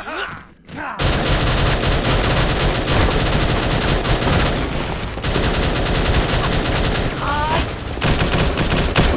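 Guns fire in rapid bursts with loud impacts and blasts.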